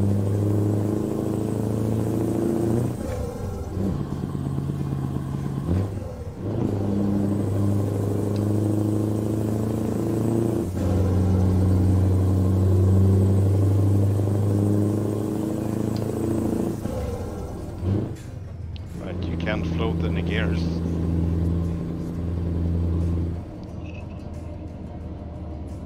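A truck engine drones steadily, its pitch dropping and rising with each gear change.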